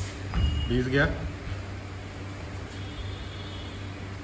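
A dumbbell thuds onto a hard floor.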